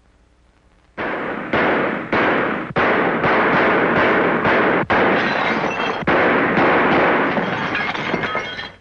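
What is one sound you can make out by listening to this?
Rapid gunshots ring out loudly, one after another.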